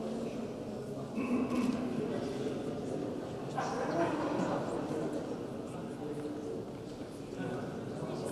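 A man speaks quietly up close.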